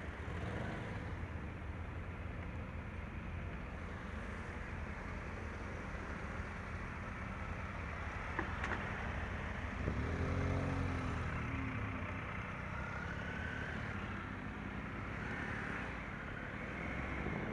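A motorcycle engine idles and rumbles close by.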